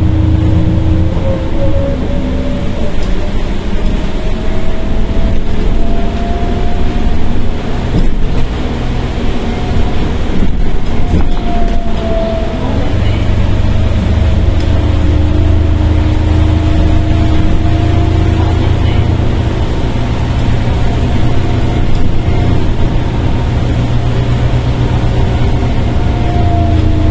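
A bus engine hums and whines steadily as the bus drives along.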